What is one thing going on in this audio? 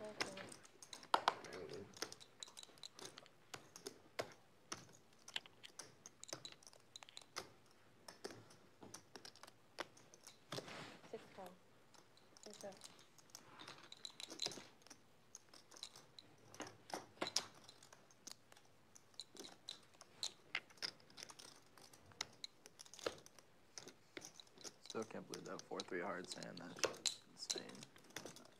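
Poker chips click and clatter together on a table.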